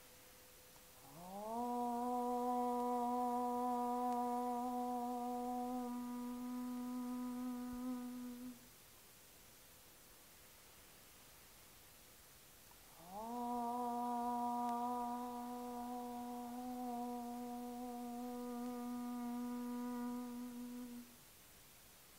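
A woman chants a long, steady low note, twice.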